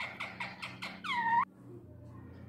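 A parrot screeches loudly several times.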